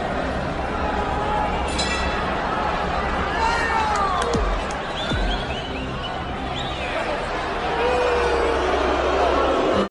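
A large crowd cheers and whistles in a big echoing arena.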